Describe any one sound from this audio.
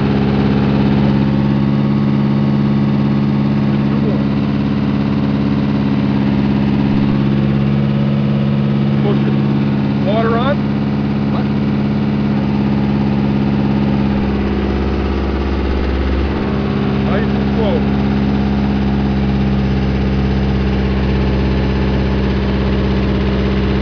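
Drill rods grind and clank as a boring machine pushes them into the ground.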